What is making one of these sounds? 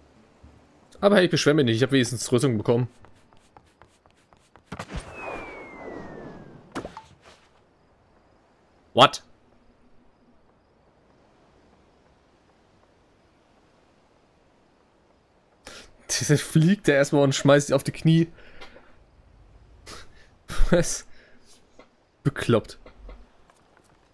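A young man speaks into a headset microphone in short bursts, with animation.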